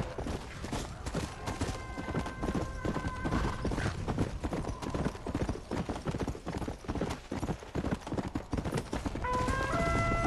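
A horse gallops, its hooves thudding on dirt.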